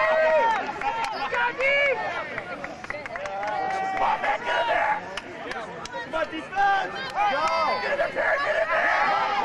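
A crowd of young people shouts and cheers outdoors nearby.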